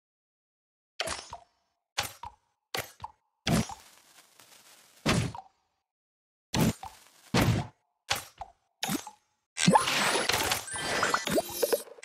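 Game blocks pop and crash in short bursts.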